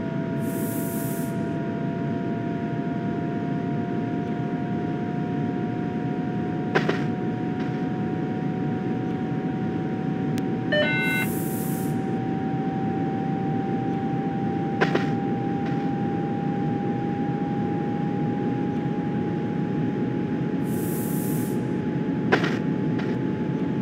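Train wheels rumble steadily along the rails.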